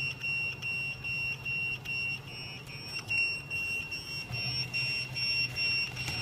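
A pager beeps loudly in rapid repeated pulses.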